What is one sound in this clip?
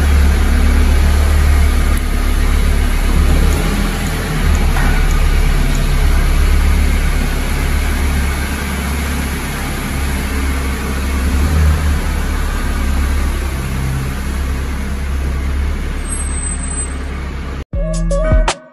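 A car engine rumbles steadily as a car drives slowly, heard in an echoing enclosed space.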